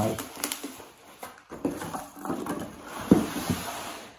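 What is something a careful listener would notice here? Cardboard packaging scrapes and knocks.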